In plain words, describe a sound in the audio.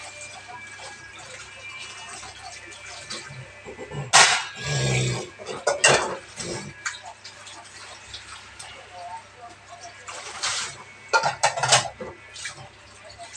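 Tap water runs into a sink.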